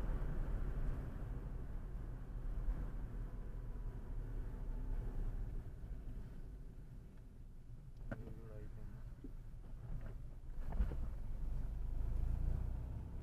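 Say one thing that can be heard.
A car engine hums steadily with road rumble from inside the moving car.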